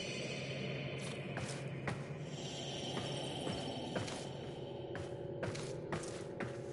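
Footsteps clank on a metal floor.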